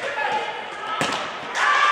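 A ball is thrown hard and thuds into a goal net.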